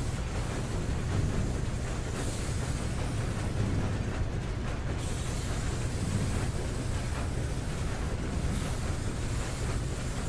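Heavy machinery rumbles steadily nearby.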